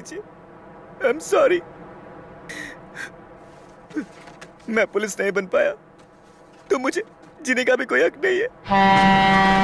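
A young man groans and cries out in pain up close.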